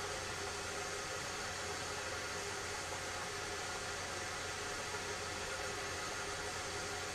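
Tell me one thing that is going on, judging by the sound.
A wood fire crackles and roars steadily in a stove.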